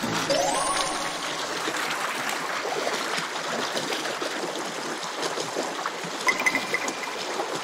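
A river rushes and splashes steadily over rocks.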